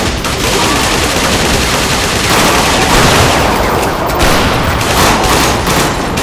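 Rapid gunfire rattles loudly and without pause.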